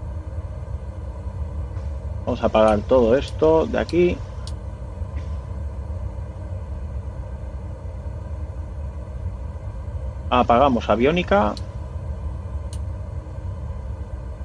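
An aircraft engine drones steadily at a low pitch.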